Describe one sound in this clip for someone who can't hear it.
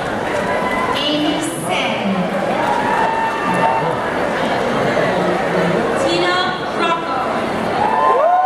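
Women talk close by.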